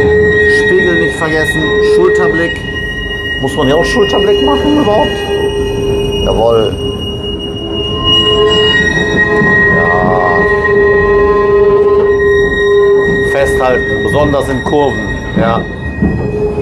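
Tram wheels squeal on curved track.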